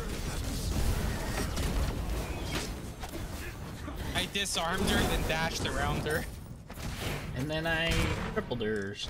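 Magic spells whoosh and crackle in a game battle.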